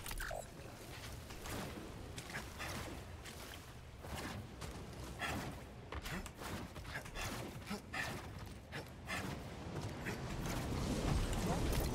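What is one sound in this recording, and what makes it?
Footsteps patter quickly on hard floors.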